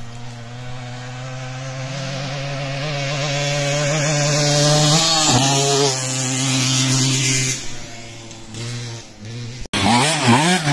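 A motorcycle engine drones steadily, growing louder as it approaches and passes close by.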